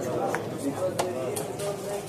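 A game clock button clicks sharply.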